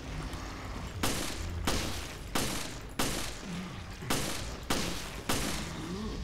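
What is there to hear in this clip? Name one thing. A handgun fires shots.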